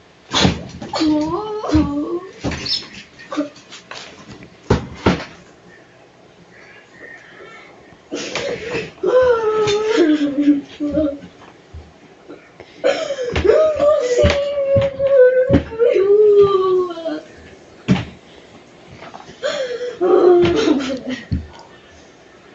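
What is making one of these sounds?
A young boy shouts and wails loudly nearby.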